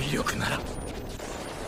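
A man shouts in alarm, close by.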